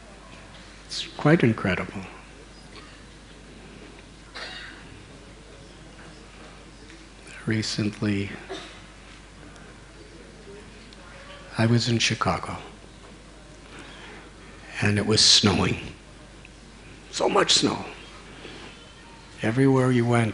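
An elderly man speaks calmly into a microphone in short bursts with pauses.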